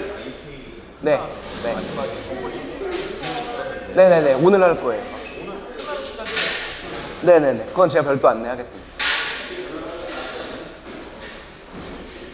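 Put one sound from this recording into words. Several people talk and chatter in a large room.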